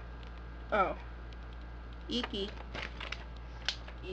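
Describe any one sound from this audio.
A paper leaflet rustles and crinkles in someone's hands.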